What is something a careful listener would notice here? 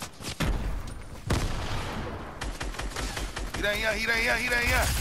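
A pickaxe strikes and smashes wooden walls with sharp cracks.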